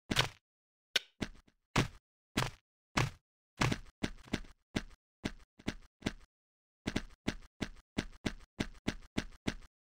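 Blocky footsteps tap quickly and evenly on stone.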